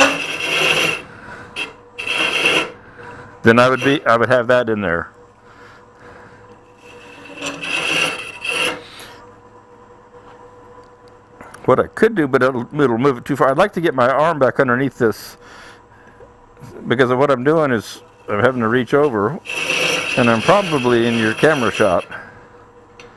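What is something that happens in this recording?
A hollowing tool scrapes and shears wood in short bursts.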